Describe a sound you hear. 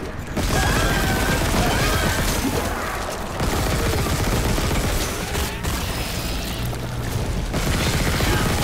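A weapon fires in loud, repeated blasts.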